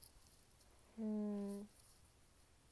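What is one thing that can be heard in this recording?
A young girl hums a short steady note close by.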